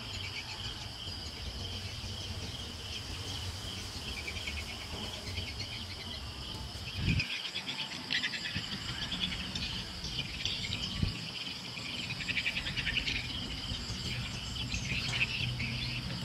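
A paintbrush rubs and scrapes against a rough wall.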